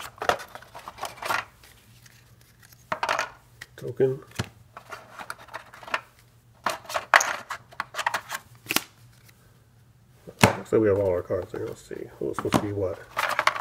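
Wooden tiles clack and rattle as hands handle them.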